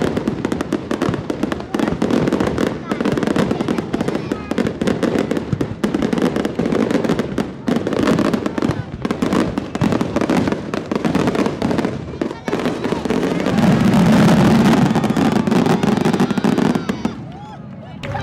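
Fireworks explode with deep booms.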